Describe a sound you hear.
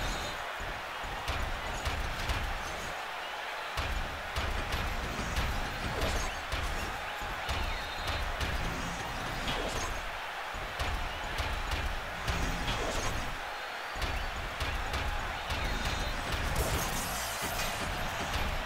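A crowd cheers and roars in the background.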